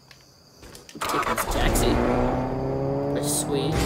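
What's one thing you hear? A car engine revs up and roars as it drives off.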